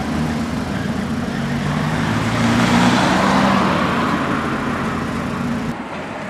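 A car drives past close by.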